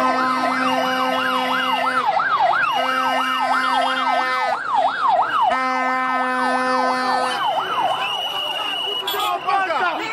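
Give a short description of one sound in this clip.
Police sirens wail rapidly up and down close by.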